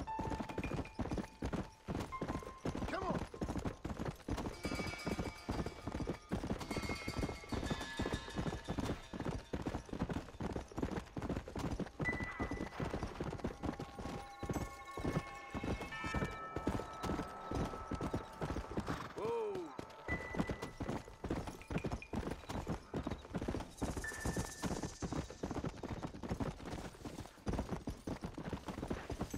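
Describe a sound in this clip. A horse's hooves gallop quickly over the ground.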